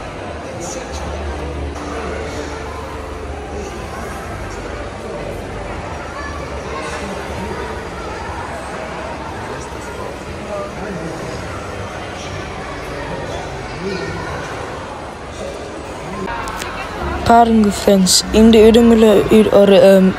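A crowd of people chatters in the background in a large indoor space.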